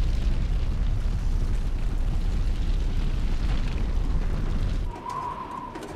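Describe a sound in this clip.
A large fire roars and crackles.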